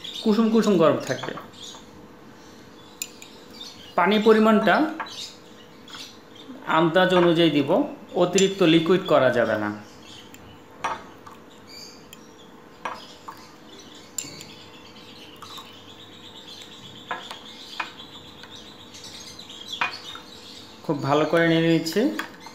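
A spoon clinks against a cup while stirring.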